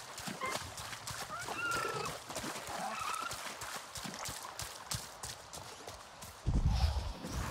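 Water splashes underfoot while wading through a shallow stream.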